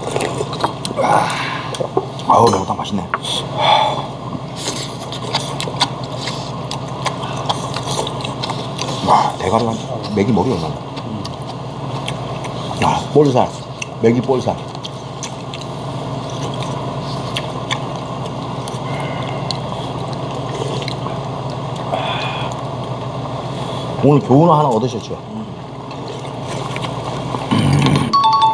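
Men slurp and chew food noisily.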